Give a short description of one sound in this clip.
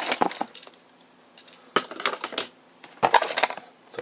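Small plastic toy pieces clatter against a hard surface.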